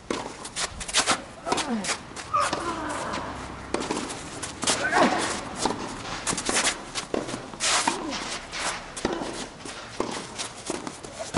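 Tennis balls are struck with sharp pops from rackets, back and forth.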